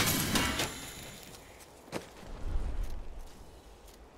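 Video game combat sounds clash and crackle.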